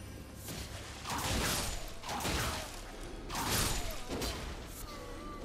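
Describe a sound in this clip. Blades strike with sharp metallic hits.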